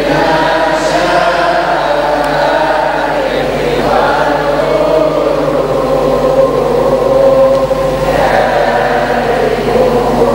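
A middle-aged man chants steadily into a microphone in a large echoing hall.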